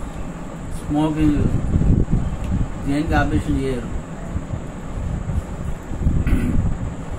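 A middle-aged man speaks calmly close by, in short phrases.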